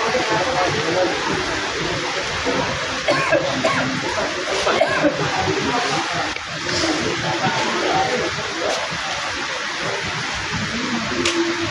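Children talk and chatter close by.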